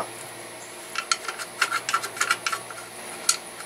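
Small metal parts click and tick under a hand at work.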